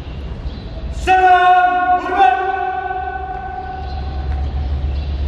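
A young man shouts a command loudly in a large echoing hall.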